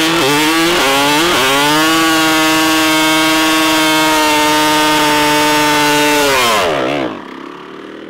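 A motorcycle engine roars at high, steady revs.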